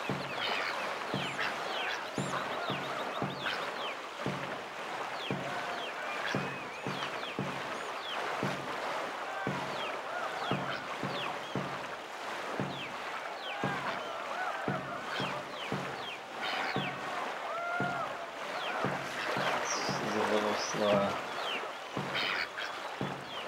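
Paddles splash through water in a quick, steady rhythm.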